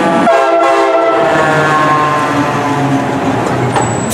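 A fire engine's motor rumbles close by.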